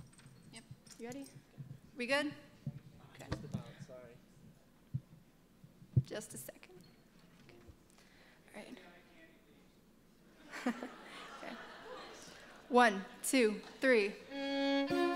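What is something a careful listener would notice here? A young girl speaks calmly into a microphone.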